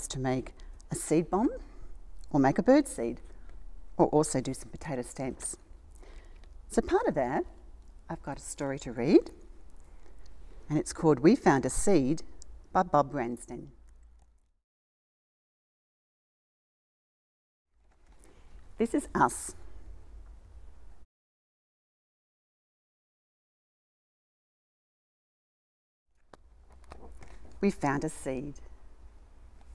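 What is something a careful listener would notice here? An older woman speaks calmly and warmly, reading aloud close by.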